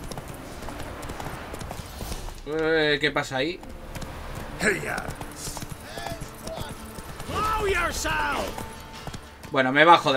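Horse hooves thud in a steady gallop.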